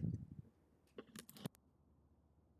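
Short electronic clicks sound as a phone menu opens.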